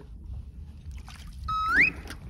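A fish splashes at the water's surface.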